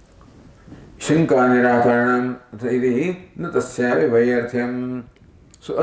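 An elderly man chants in a sustained, melodic voice through a microphone.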